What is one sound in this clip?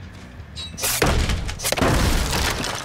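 A blade strikes wooden boards with a loud crack.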